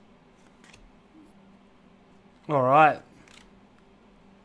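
Trading cards rustle softly between fingers.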